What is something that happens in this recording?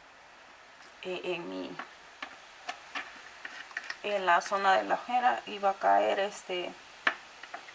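A woman talks calmly and close up.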